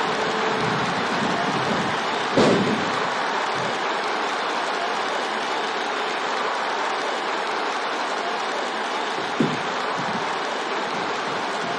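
A large crowd cheers and murmurs steadily throughout.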